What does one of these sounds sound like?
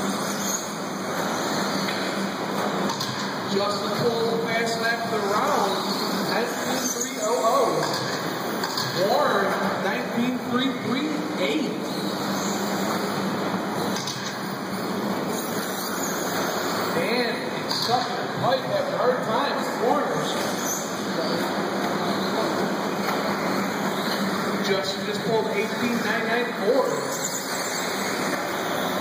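Small electric motors of toy race cars whine, rising and falling in pitch as the cars speed up and slow down.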